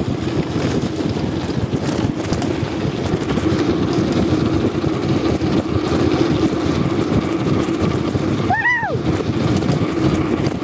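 Wind rushes past loudly, outdoors.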